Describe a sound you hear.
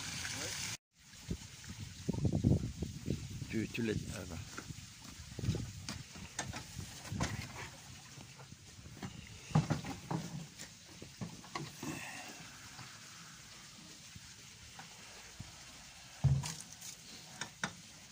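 A plastic bin knocks and thuds against a metal truck bed.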